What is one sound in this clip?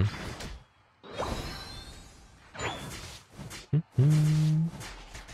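Video game sound effects whoosh and chime.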